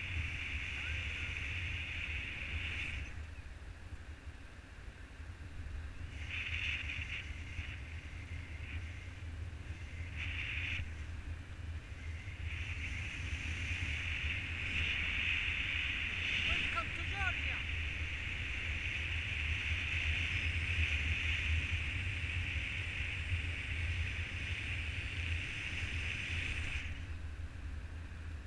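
Wind rushes and buffets loudly against the microphone high in the open air.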